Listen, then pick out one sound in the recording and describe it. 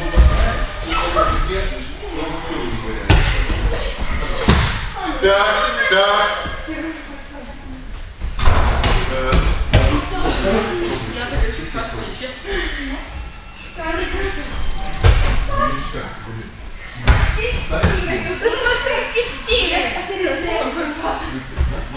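Children talk and call out in a room that echoes a little.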